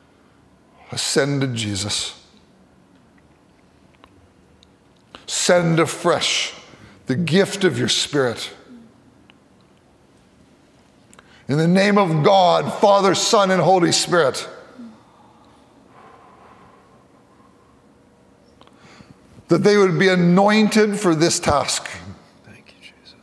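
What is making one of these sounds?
A middle-aged man speaks slowly and solemnly into a microphone, with pauses, in an echoing room.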